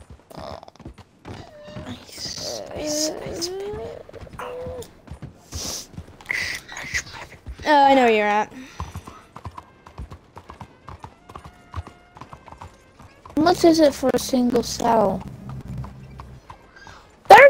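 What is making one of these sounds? A horse's hooves clop along at a walk.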